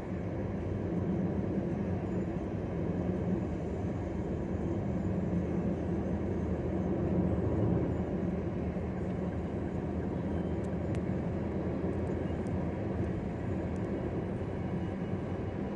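Tyres roar steadily on the road surface.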